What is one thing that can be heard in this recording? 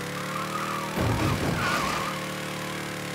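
Car tyres screech briefly on the road.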